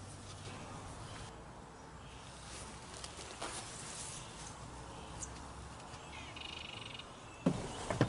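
A wire mesh trap rattles and clinks as it is handled.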